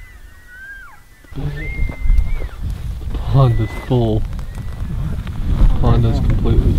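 A large herd of elk calls out with high whistling bugles and low mews.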